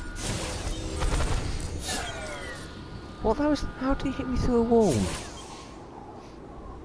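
Electronic video game effects whoosh and hum.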